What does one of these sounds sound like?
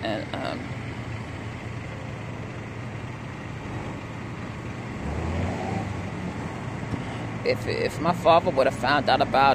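A car engine hums as the car slowly pulls away.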